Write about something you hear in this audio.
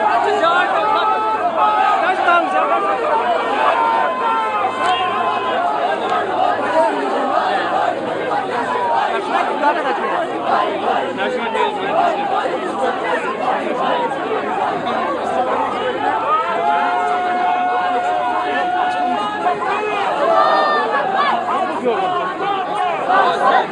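A man shouts slogans through a loudspeaker.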